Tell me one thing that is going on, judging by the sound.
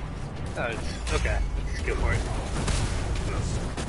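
A large explosion booms with a deep rumble.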